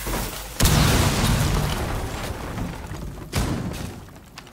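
Rapid gunfire rattles and bullets smack into walls.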